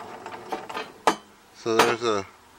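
A plastic slide holder clicks as it is lifted out.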